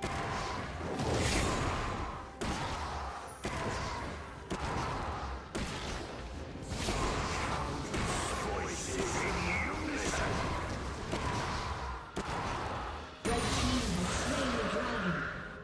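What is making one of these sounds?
Magic spells whoosh and crackle in a fast fantasy battle.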